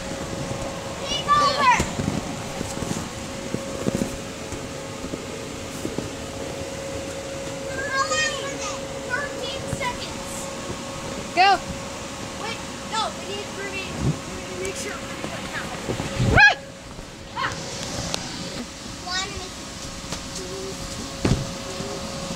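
Feet thump on a bouncy inflatable floor.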